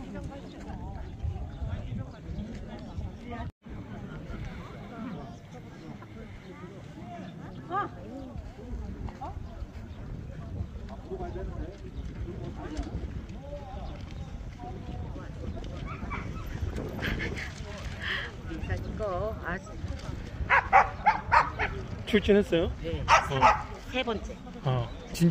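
Men and women chatter nearby and in the distance outdoors.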